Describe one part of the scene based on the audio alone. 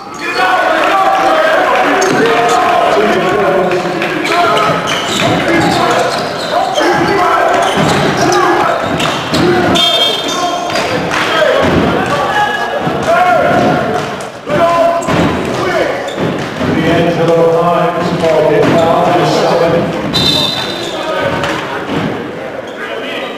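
Sneakers squeak on a hardwood court in an echoing gym.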